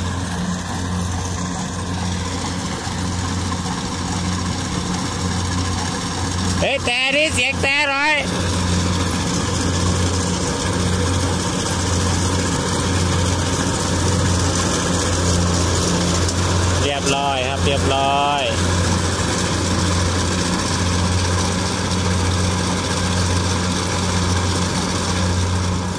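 A combine harvester rattles as it cuts dry rice stalks.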